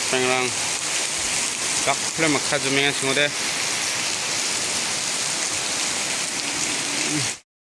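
Heavy rain pours steadily onto plants and grass outdoors.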